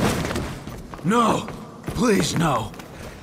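A man speaks pleadingly, close by.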